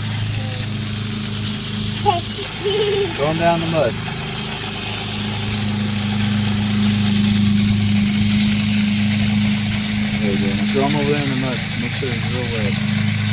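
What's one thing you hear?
Water sprays and hisses steadily from a hose nozzle.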